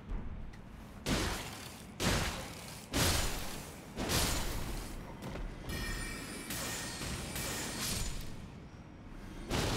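Sword blows strike and clang in quick bursts.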